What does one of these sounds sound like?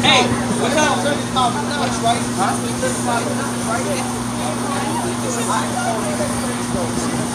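Men talk with animation nearby.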